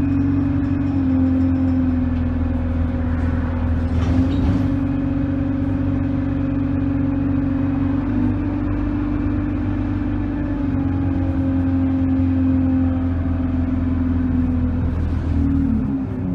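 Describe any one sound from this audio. A bus engine hums and drones steadily from inside the bus.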